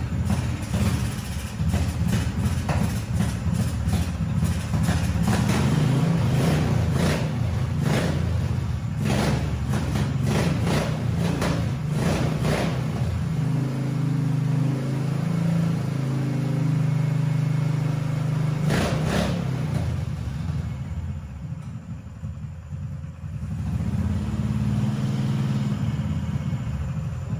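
A small engine runs with a low, uneven rumble.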